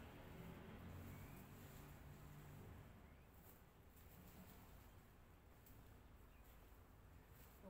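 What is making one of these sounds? A woman rakes the ground with scraping sounds.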